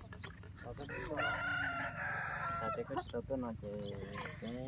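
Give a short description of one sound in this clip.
Young women chat quietly nearby.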